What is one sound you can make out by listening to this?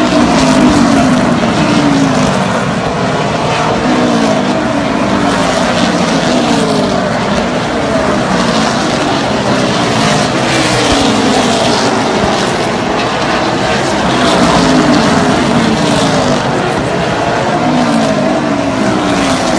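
Race car engines roar loudly and rev as cars speed around a track nearby.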